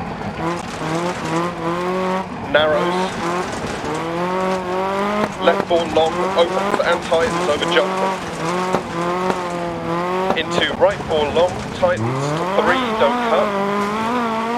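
A rally car engine roars and revs up and down.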